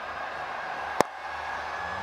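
A cricket bat sharply cracks against a ball.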